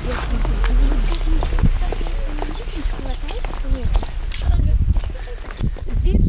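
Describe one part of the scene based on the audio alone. Children chatter close by as they walk.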